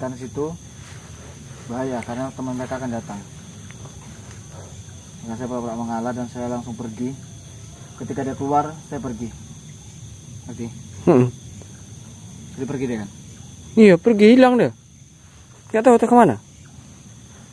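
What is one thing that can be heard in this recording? A young man speaks close by in bursts, sometimes loudly.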